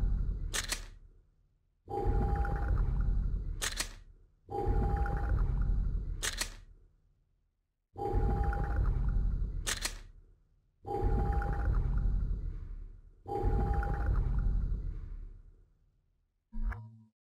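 Game menu sounds whoosh and rumble deeply, each ending in a sharp ping.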